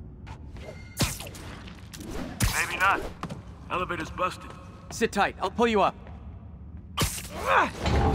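A rope line snaps taut with a sharp whip.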